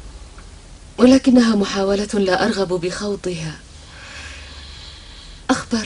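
A young woman speaks close by in an upset, pleading voice.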